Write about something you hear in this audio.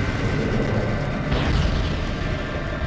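A deep, rumbling blast booms and roars.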